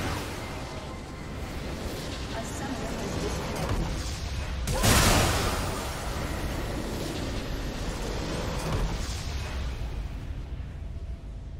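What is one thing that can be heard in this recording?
A game's battle effects crackle and boom.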